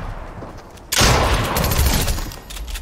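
A pistol fires.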